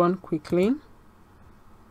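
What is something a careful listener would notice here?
A woman speaks briefly and calmly into a microphone.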